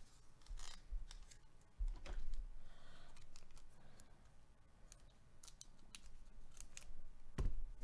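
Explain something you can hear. A foil packet crinkles.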